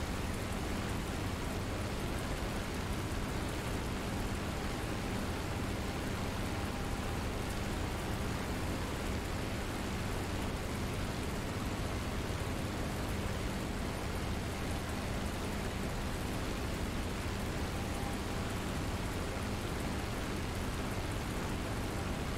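Wind rushes steadily past the cockpit.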